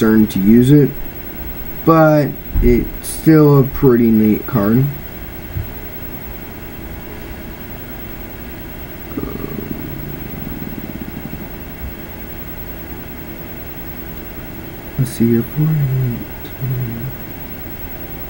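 A teenage boy talks calmly and close into a headset microphone.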